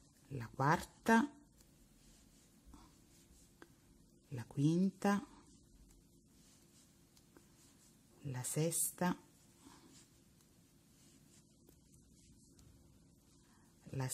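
Yarn rustles softly as a crochet hook pulls loops through it.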